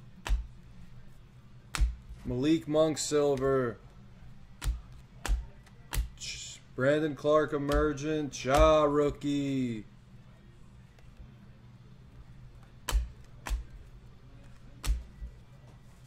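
Trading cards slide and tap against each other in a person's hands.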